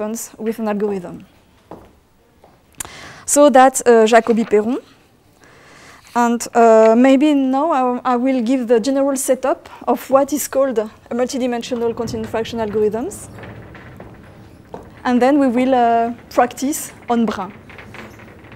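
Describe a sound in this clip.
A woman speaks calmly through a microphone, explaining.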